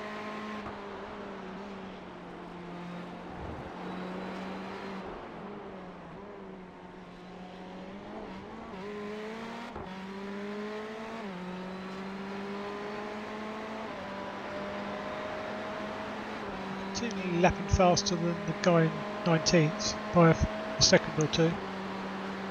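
A race car engine drones and rises and falls in pitch as the car speeds along.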